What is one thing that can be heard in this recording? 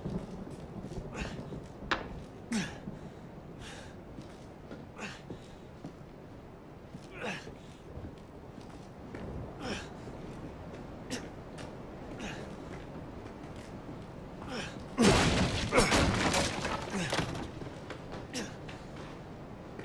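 Footsteps thud slowly on metal stairs and then creak on wooden floorboards.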